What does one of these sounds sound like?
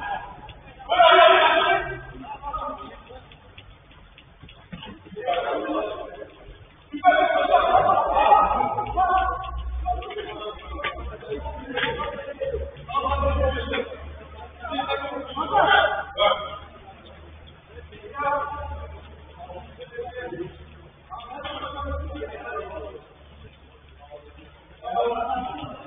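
Young men shout and call to each other at a distance.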